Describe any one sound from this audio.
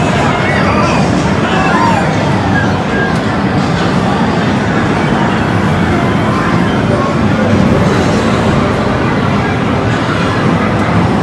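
Arcade machines beep, jingle and play loud electronic music all around.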